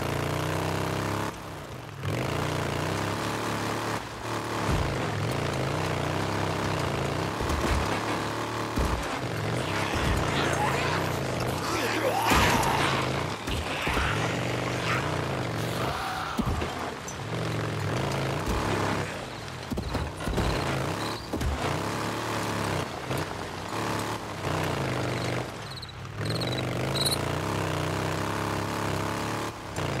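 A motorcycle engine hums and revs steadily.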